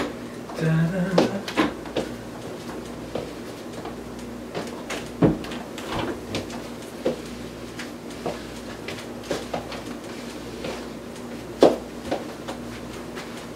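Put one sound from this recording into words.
High heels click on a wooden floor.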